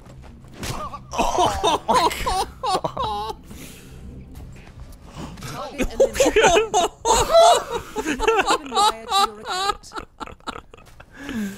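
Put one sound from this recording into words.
Several men talk and laugh excitedly into a microphone.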